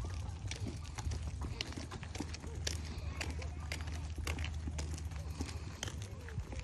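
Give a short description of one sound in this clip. A hand cart's wheels roll and rattle on a paved path.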